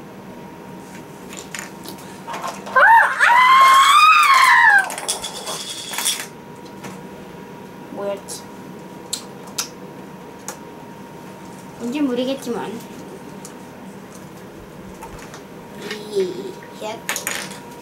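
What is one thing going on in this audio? Plastic toy parts click and clatter close by.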